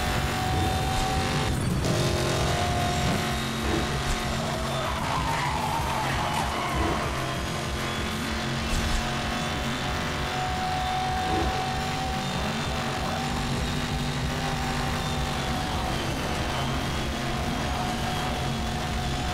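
A sports car engine roars steadily at high speed.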